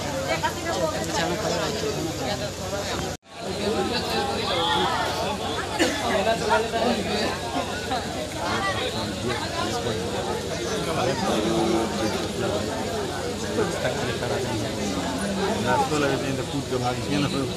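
A crowd of men, women and children chatters loudly all around outdoors.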